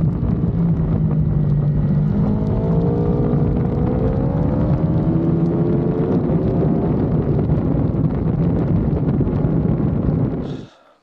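Wind rushes loudly past the moving motorcycle.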